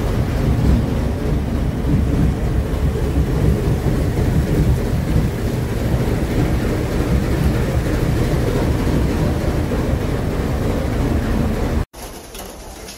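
A train car rumbles loudly along the track in a tunnel.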